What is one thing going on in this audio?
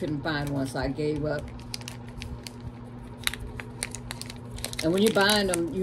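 Plastic packaging crinkles and rustles in hands, close by.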